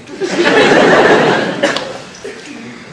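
An audience applauds loudly in a hall, then quiets.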